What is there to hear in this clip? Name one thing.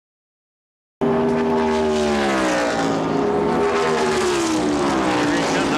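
A race car engine roars past at high speed.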